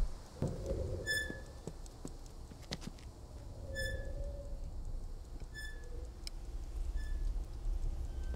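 A clock gives short, high pinging ticks.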